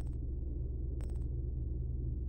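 A menu selection clicks softly.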